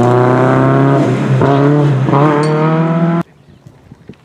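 A rally car engine roars loudly close by as the car speeds away.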